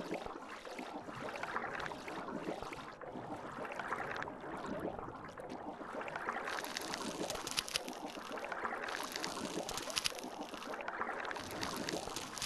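A killer whale crunches as it bites into a shark underwater.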